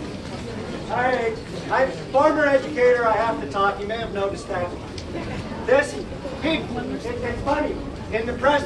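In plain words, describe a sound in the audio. A man speaks loudly to a crowd outdoors.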